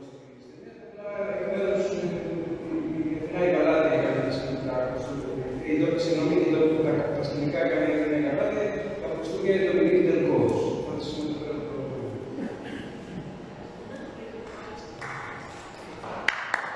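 A woman speaks calmly into a microphone over loudspeakers in a large echoing hall.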